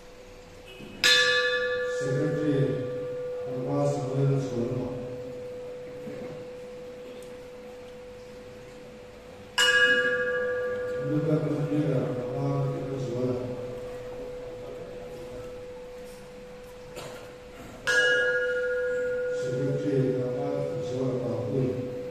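An electronic chime rings out sharply and lingers, three times.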